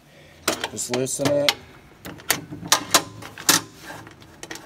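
Small metal parts click and tap against a metal plate.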